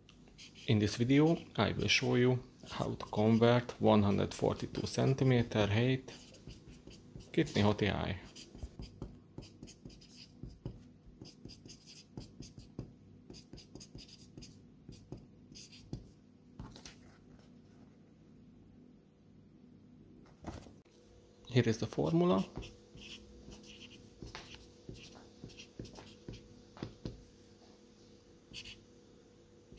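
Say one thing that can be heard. A marker pen squeaks and scratches across paper.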